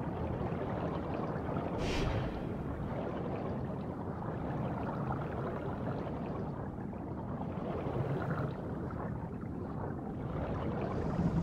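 Water swirls and gurgles steadily underwater.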